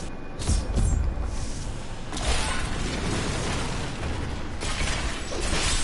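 Weapons clash and slash against skeletons in a game battle.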